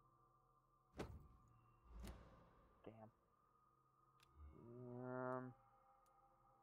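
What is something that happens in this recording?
Game menu sounds click and whoosh as selections change.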